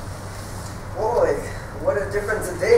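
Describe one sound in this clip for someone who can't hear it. A man speaks loudly on a stage.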